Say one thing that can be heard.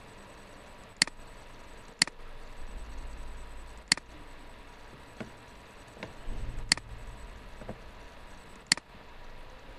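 A computer mouse clicks several times, sharp and close.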